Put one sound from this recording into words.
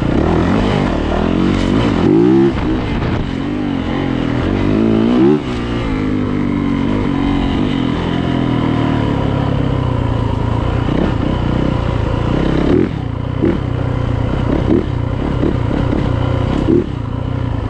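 A dirt bike engine buzzes loudly close by, revving up and down.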